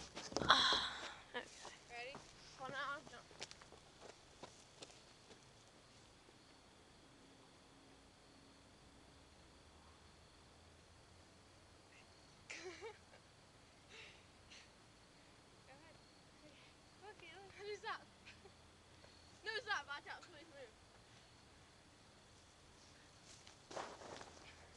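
Young women shout and call out to each other from a distance outdoors.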